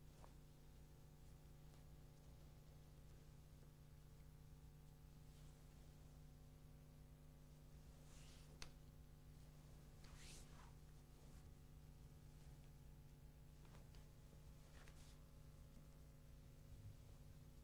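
Bare feet shuffle softly on a floor.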